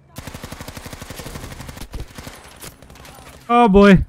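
Rapid machine gun fire rattles.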